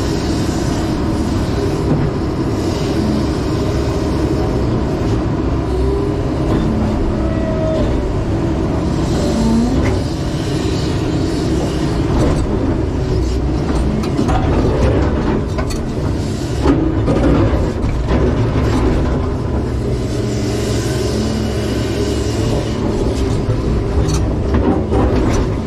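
Hydraulics whine as an excavator arm moves.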